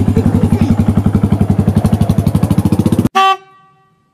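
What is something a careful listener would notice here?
A motorcycle engine idles with a fast, steady chugging.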